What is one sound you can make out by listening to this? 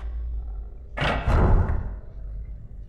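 A wooden door rattles open with a loud bang.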